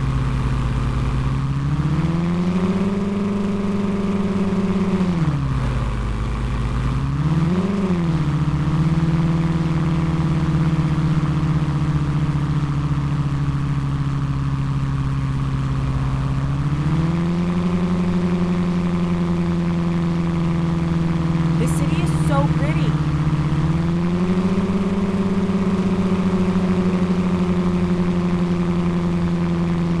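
A car engine hums steadily, rising and falling in pitch as it speeds up and shifts gears.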